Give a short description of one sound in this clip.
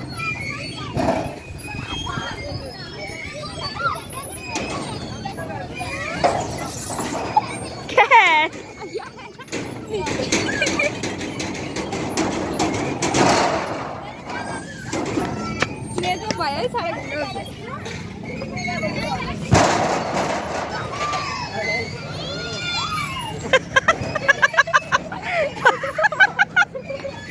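Children shout and squeal with glee nearby.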